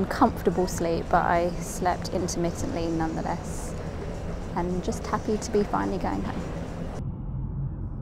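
A young woman talks casually, close to a microphone.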